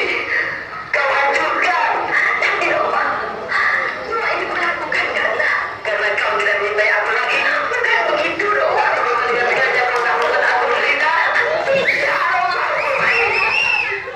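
Young performers speak and sing loudly through a loudspeaker in a large echoing hall.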